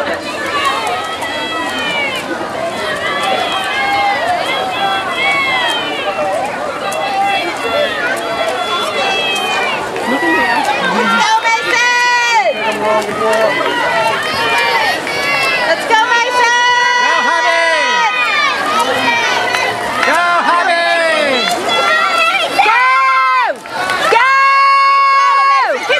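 Children and adults shout and cheer loudly nearby.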